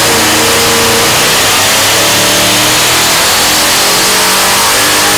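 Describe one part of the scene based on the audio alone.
A turbocharged engine roars loudly at high revs.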